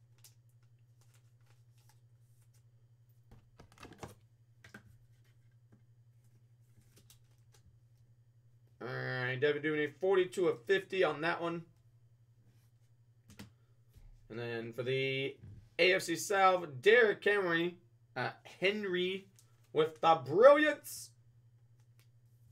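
A plastic card sleeve crinkles as hands handle it.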